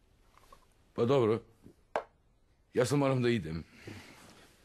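A younger man speaks calmly and close by.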